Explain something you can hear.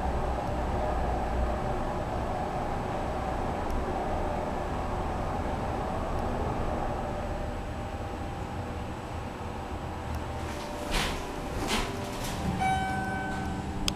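An elevator hums steadily as it travels.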